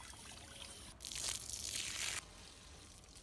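Water splashes out of a bowl onto the ground.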